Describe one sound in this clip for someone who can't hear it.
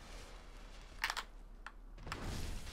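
A sword clangs against an enemy.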